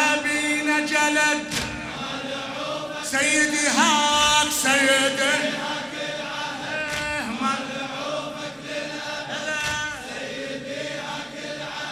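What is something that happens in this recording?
A man chants loudly through a microphone, with echo.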